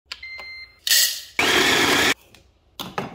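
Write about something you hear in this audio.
A coffee grinder whirs briefly.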